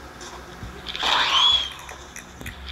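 A fiery burst whooshes in a video game.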